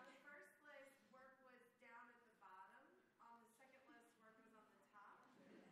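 A woman speaks with animation into a microphone, heard through loudspeakers.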